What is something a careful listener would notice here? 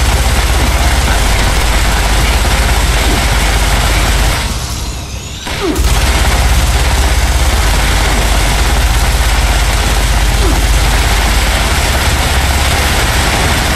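Explosions burst and boom close by.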